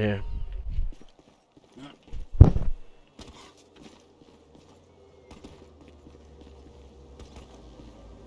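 Footsteps run on concrete.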